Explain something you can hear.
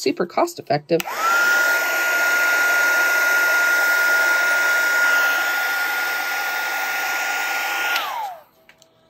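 A small rotary tool whirs with a steady high whine, then winds down.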